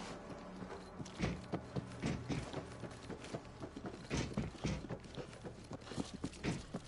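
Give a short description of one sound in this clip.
Heavy footsteps thud on hollow boards and metal floor.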